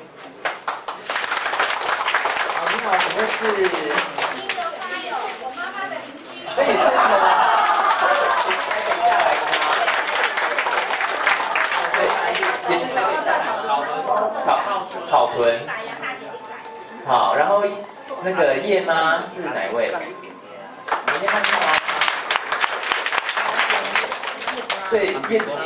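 A crowd of women and men laugh and cheer loudly.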